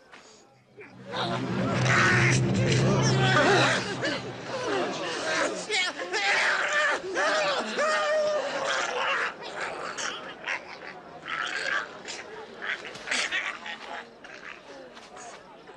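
A boy screams and wails in distress.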